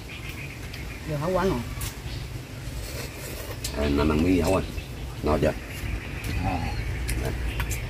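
Women talk casually nearby.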